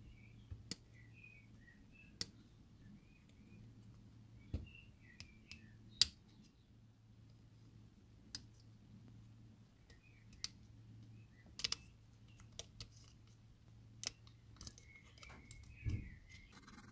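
Side cutters snip through plastic with sharp clicks.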